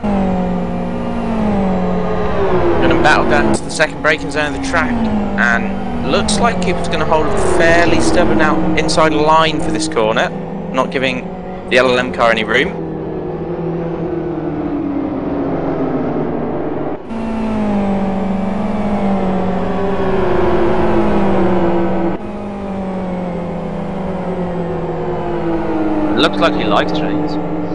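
Race car engines roar and whine as they shift gears.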